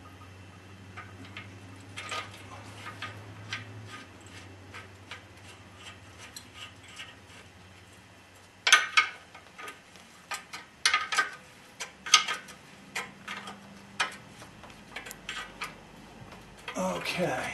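Small metal parts click and clink as hands work on them.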